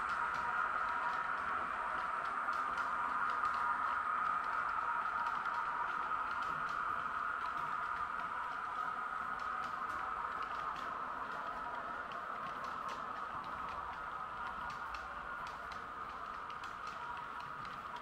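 A model train hums steadily as it rolls along the track.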